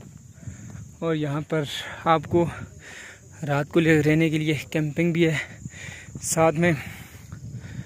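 A man speaks close by in a calm voice.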